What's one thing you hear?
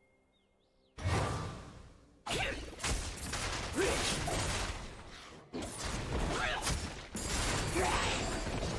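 Magic spells whoosh and crackle in loud bursts during a fight.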